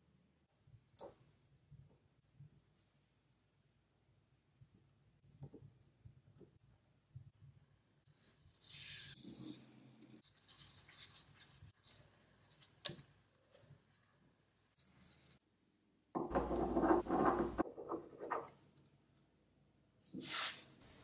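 Small metal parts click and tap on a wooden surface.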